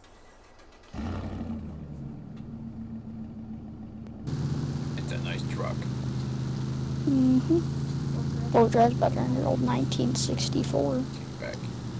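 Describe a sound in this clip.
A pickup truck's engine rumbles and grows louder as it drives off.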